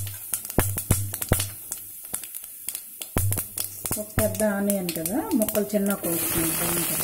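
Spices crackle and pop in hot oil.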